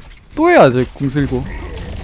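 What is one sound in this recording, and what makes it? Thrown blades whoosh and clatter in quick bursts.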